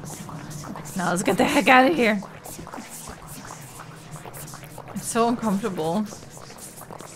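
A young woman talks through a microphone, close and casual.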